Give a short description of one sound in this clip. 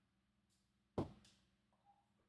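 A small plastic part taps on a hard mat.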